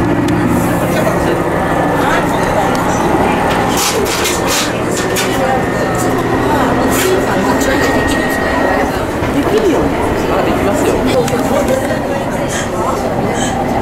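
A train rumbles along its tracks.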